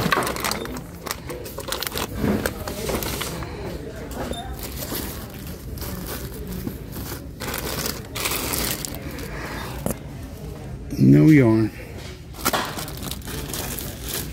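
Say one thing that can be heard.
Plastic bags crinkle and rustle as a hand rummages through them.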